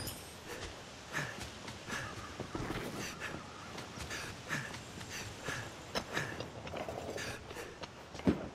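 Footsteps patter quickly over roof tiles.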